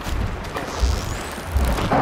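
A bowstring creaks as it is drawn.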